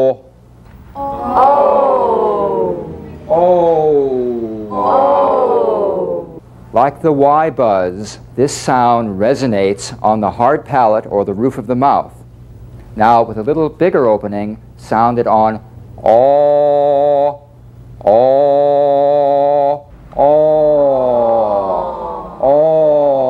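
A group of men and women sing sliding vowel sounds together.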